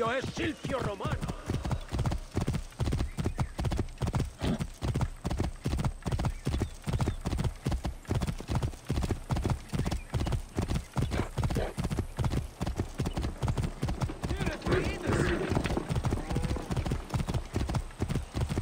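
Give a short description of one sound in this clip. Horse hooves clop steadily on a stone road at a trot.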